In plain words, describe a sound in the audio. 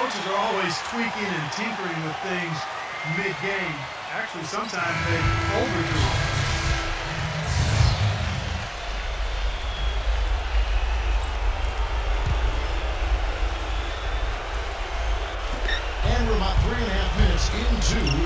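A large crowd cheers and roars in an echoing arena.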